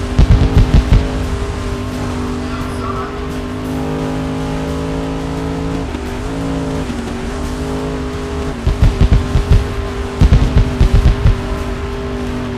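Car tyres skid and rumble over the track.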